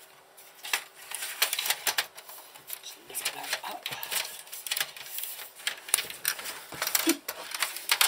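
A plastic device slides and knocks on a hard countertop.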